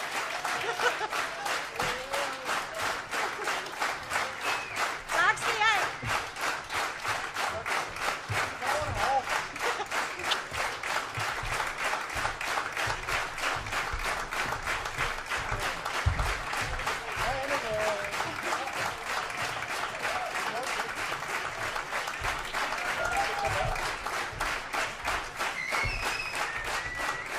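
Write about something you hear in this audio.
Audience members cheer and whoop now and then.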